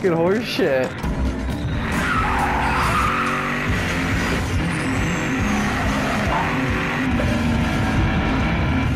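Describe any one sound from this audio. A car engine revs and roars as the car drives off.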